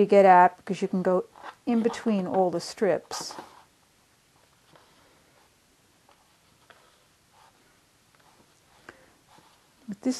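Thread rustles softly as it is pulled through fabric.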